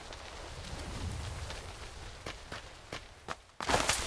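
Wind rushes past steadily, then fades.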